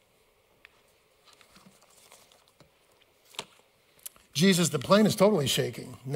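Paper rustles as a man turns pages.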